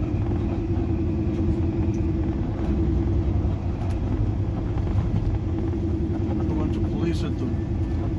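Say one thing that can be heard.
A car engine rumbles steadily, close by.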